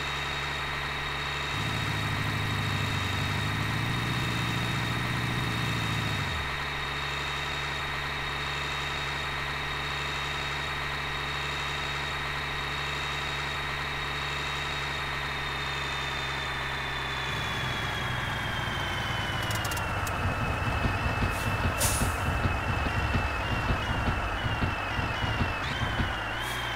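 A truck engine drones steadily, then its pitch drops as the truck slows down.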